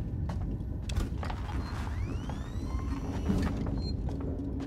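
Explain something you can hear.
An electronic tracker beeps with rising pings.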